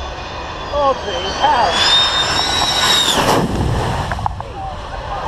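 A jet roars low overhead with a rising whine, then fades.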